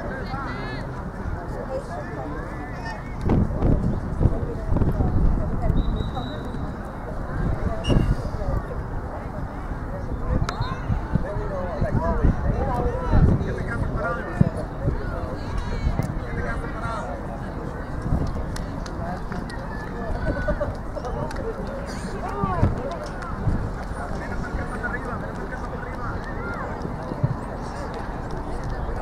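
Children and adults shout and call out across an open outdoor field.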